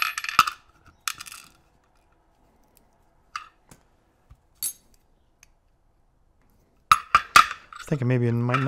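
Small metal lock parts click and clink in a hand.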